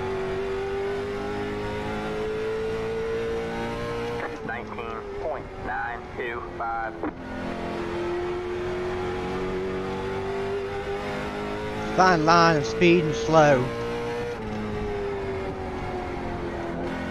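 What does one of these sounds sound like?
A racing car engine drones steadily, rising and falling slightly in pitch.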